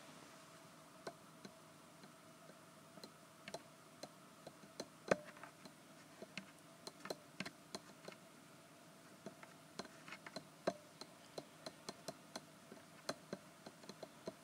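Soft brushes tap and brush lightly against a microphone.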